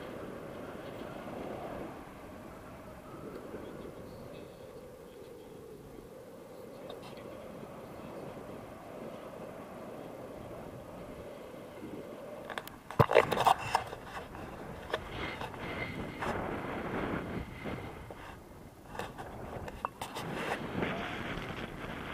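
Wind rushes steadily past a microphone outdoors.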